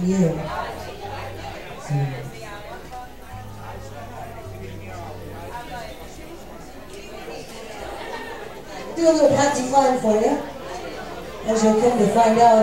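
A fiddle plays a lively tune.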